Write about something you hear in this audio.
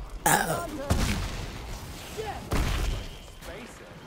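Explosions boom and debris rattles nearby.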